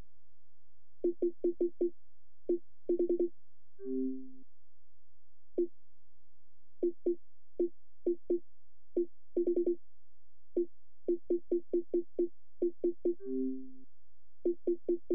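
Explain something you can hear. Short, soft menu clicks tick one after another as a selection moves.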